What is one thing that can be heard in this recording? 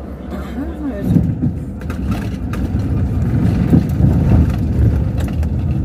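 A vehicle rattles and bumps loudly over a rough dirt road.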